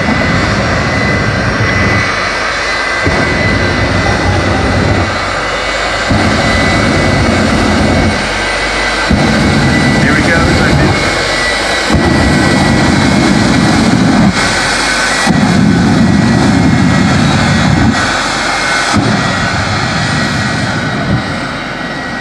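A jet engine roars loudly in repeated bursts.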